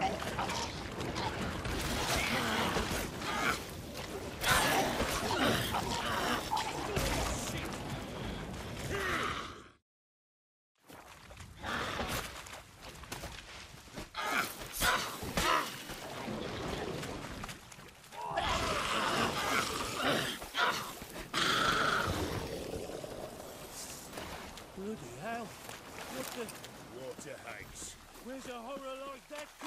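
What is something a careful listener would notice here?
Men grunt and shout while fighting.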